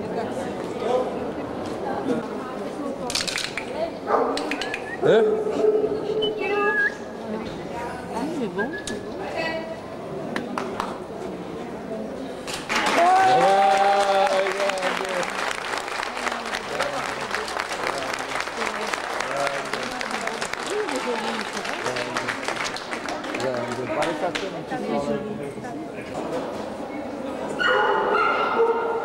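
Several adults talk nearby in an echoing hall.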